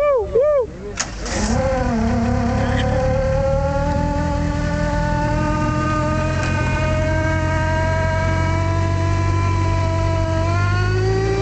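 A car engine starts up and idles with a steady hum.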